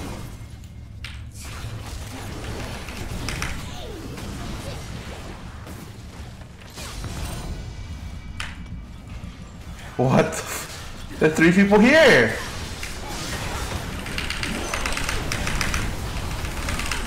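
Fantasy battle effects crackle and blast from a video game.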